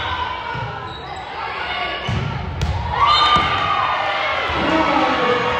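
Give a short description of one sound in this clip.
A crowd cheers and claps in an echoing gym.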